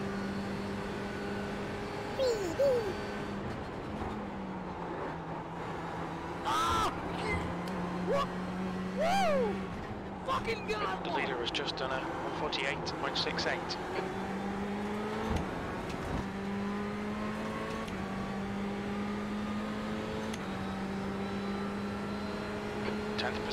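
A racing car engine drones steadily, shifting pitch as it speeds up and slows down.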